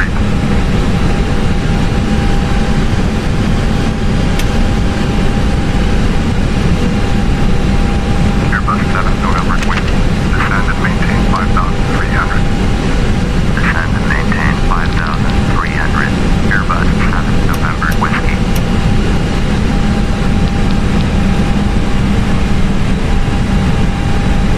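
Jet engines drone with a steady low rumble.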